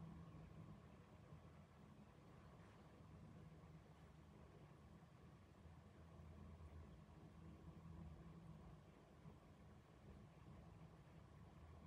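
Distant traffic hums steadily across a town.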